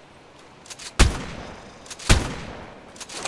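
A blade strikes hard with sharp, loud hits.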